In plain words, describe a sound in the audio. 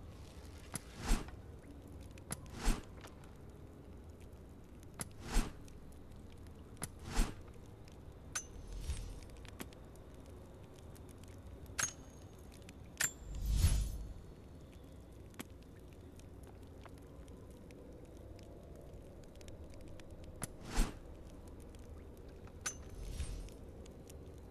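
Short menu clicks and soft whooshes sound every few seconds.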